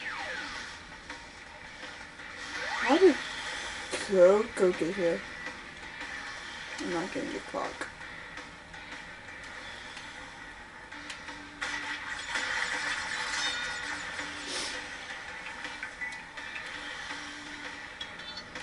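Water splashes from a television speaker.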